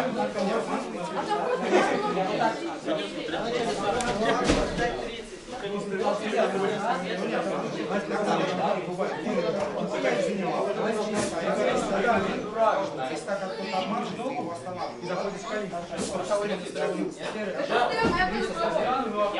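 Several young men talk and call out in a large echoing hall.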